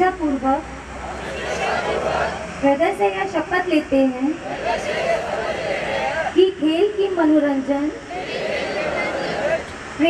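A crowd of young men repeats the words together in a loud murmur.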